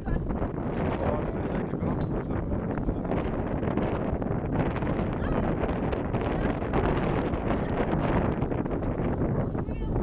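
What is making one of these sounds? Strong wind rumbles against the microphone outdoors.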